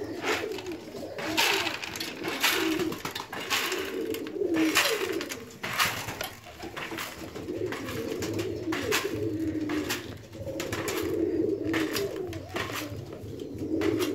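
Dry grain rattles and patters as it is poured from a plastic bowl into a feeder.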